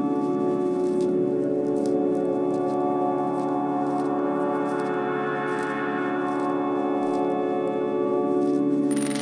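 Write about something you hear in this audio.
Plastic pipes click and knock together as they are handled.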